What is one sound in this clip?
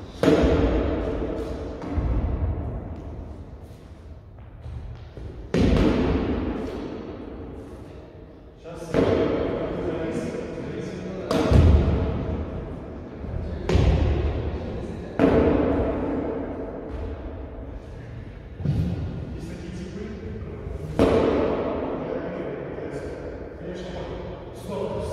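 A heavy hammer strikes a rubber tyre again and again with loud booming thuds that ring out in a large echoing hall.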